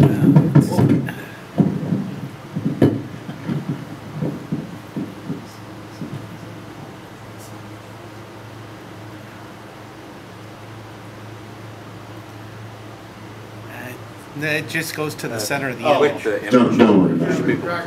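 A man speaks calmly into a microphone in a room with some echo.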